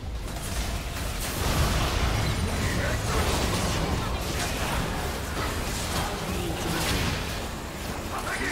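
Game spell effects whoosh and explode in a busy fight.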